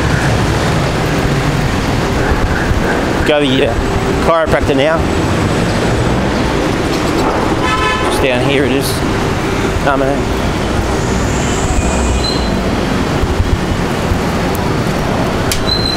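Traffic rumbles steadily along a busy street nearby.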